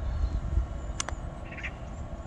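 A putter taps a golf ball.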